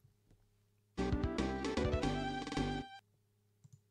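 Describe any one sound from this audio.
A short electronic jingle plays.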